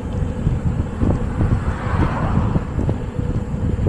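A car passes by.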